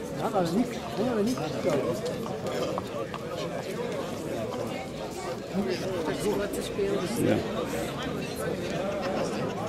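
A crowd of men and women chatter and talk outdoors.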